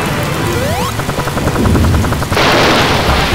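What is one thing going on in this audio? A cartoonish propeller whirs rapidly as a game character flies.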